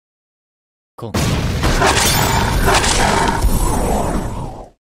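Sword slashes and heavy impacts crash in loud bursts.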